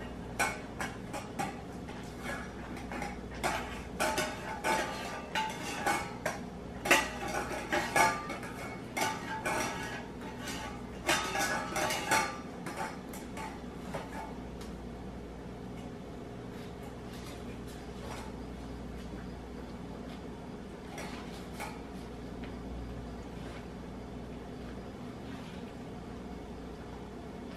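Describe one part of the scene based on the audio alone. A dog crunches food and clinks a metal bowl up close.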